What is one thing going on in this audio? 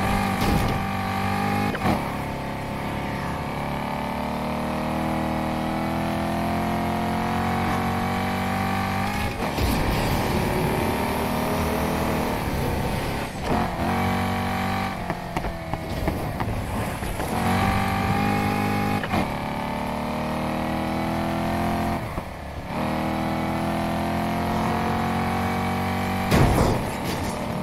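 A sports car engine roars and revs up through the gears.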